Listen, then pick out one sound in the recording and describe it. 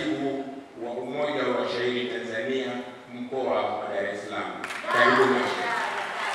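An elderly man speaks loudly and with animation through a microphone in an echoing hall.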